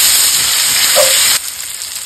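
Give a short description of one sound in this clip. A spatula scrapes across a frying pan.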